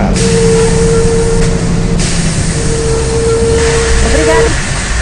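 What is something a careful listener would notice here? A bus engine drones steadily as the bus drives along.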